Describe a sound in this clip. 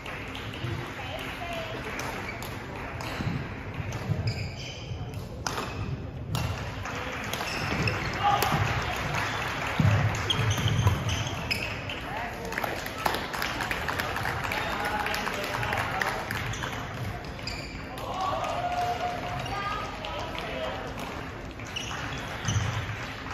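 Shoes squeak and thud on a hard court floor.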